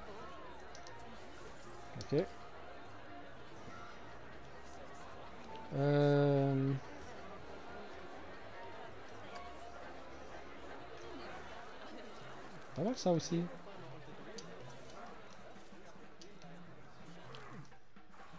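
A crowd murmurs faintly in the distance outdoors.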